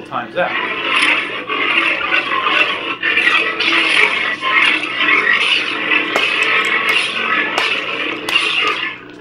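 A toy lightsaber whooshes again and again as it is swung.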